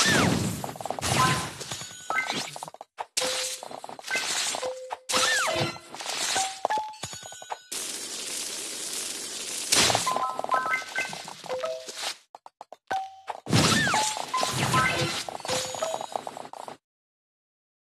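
Game sound effects chime and pop as fruit pieces burst and clear.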